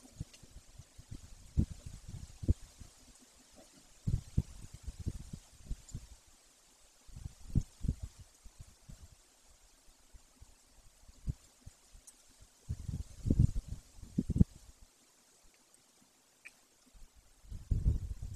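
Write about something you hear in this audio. A large bird tears at its prey, rustling and knocking the dry twigs of its nest.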